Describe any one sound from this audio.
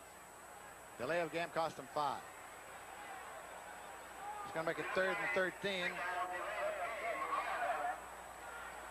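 A man announces calmly through a stadium loudspeaker.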